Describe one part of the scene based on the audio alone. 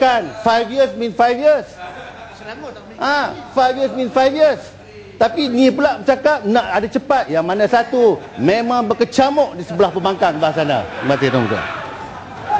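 A middle-aged man speaks forcefully through a microphone.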